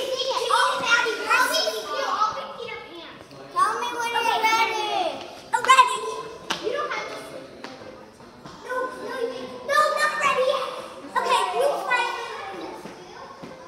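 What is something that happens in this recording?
Young children shout and squeal playfully nearby.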